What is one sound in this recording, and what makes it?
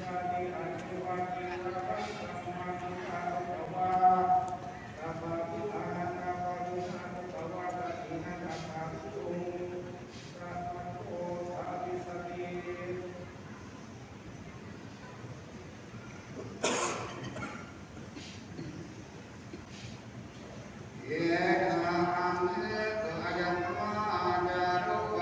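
A group of men chant together in a steady drone, in an echoing hall.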